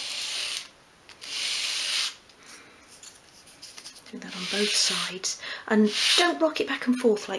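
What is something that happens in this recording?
A small piece of wood rubs back and forth on sandpaper with a scratchy hiss.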